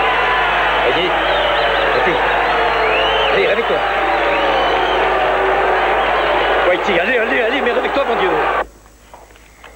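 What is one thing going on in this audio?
A crowd cheers and shouts loudly around a boxing ring.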